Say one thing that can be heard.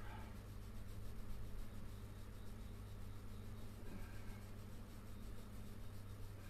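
Fabric rustles softly as a shirt is handled.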